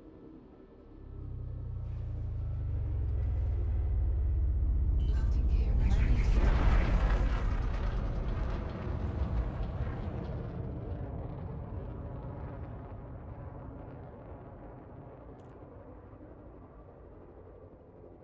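A deep engine rumble swells to a roar and then slowly fades.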